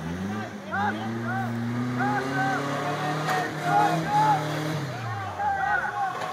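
An off-road vehicle's engine revs and rumbles nearby, then eases off.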